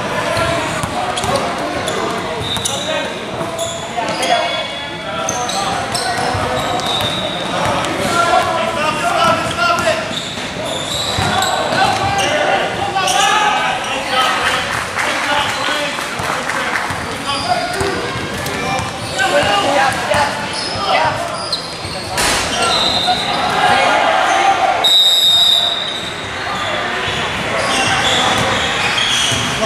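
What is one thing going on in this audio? A basketball is dribbled on an indoor court.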